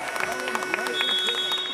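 A buzzer sounds steadily.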